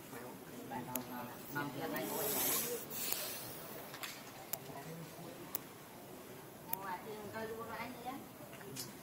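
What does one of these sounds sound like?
A young monkey squeaks with short, high cries.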